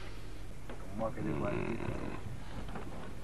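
A man speaks close by, in a low voice.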